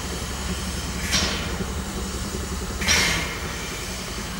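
A steam locomotive hisses out bursts of steam.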